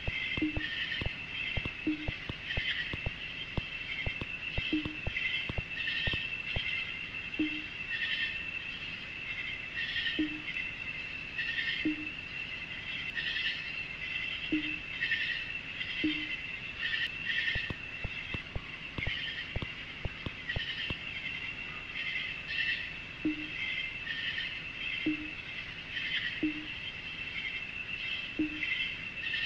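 Quick high electronic blips chatter in bursts as lines of text print out.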